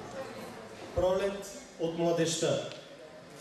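A young man reads aloud into a microphone in a large echoing hall.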